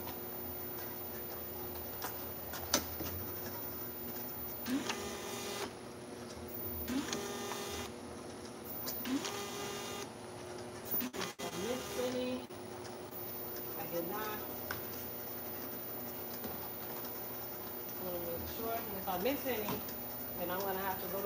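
A labelling machine hums and whirs steadily.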